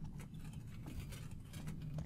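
Hands push against a glass pane.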